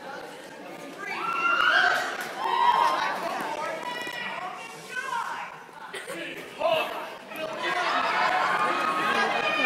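Young performers speak and shout with animation from a distance, echoing in a large hall.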